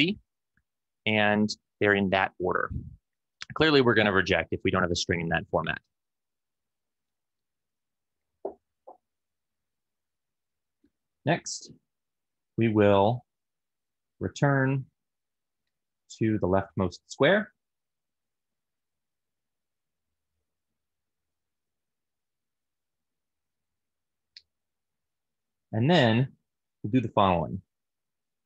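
A man speaks calmly and clearly into a close microphone, in short bursts with long pauses.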